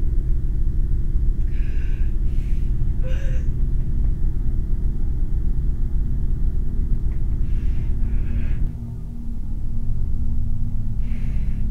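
A young woman sobs and cries quietly.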